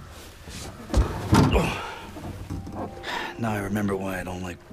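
A young man speaks quietly and dryly.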